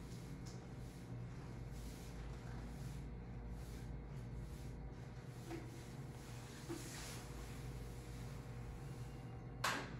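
A cloth wipes and squeaks across a chalkboard.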